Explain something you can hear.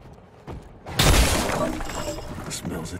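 A wooden door bursts open with a loud splintering crash.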